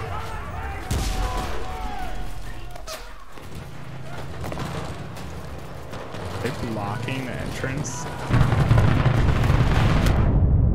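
Footsteps crunch over rubble and broken stone.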